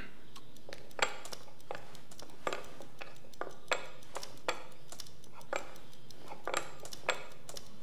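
Chess pieces click on a wooden board.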